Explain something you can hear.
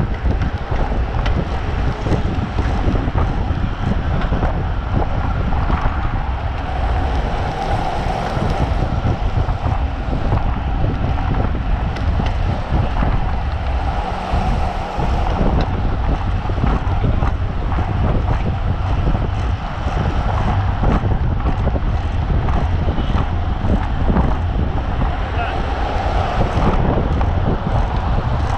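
Bicycle wheels hum on the road.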